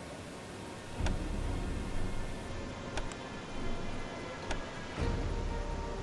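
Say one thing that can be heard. Sharp menu clicks sound a few times.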